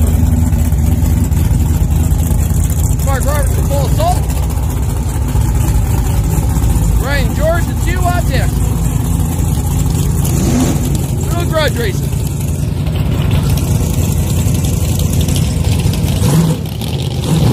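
A truck engine idles with a deep, loud rumble.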